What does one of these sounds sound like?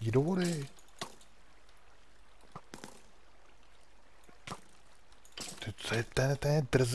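A pickaxe strikes stone with dull knocks.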